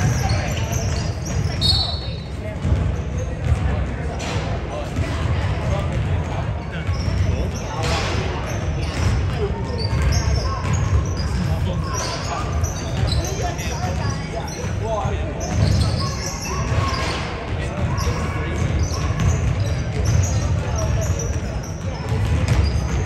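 Spectators chatter in the stands.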